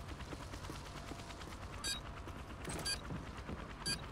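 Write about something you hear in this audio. A rifle fires bursts of rapid shots.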